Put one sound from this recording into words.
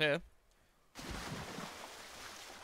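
Something splashes heavily into water.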